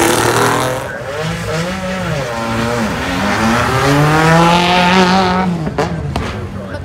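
A second rally car accelerates hard and roars past with rising revs.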